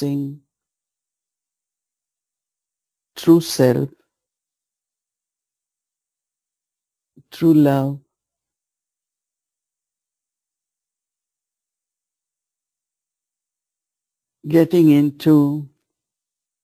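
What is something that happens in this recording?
A man speaks calmly in short phrases with long pauses.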